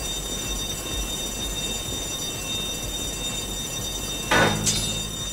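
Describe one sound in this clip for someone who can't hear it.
A cutting torch hisses and crackles against metal bars.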